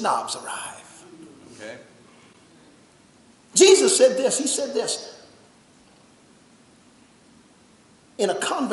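A man preaches with animation into a microphone, in bursts with long pauses, in a large echoing room.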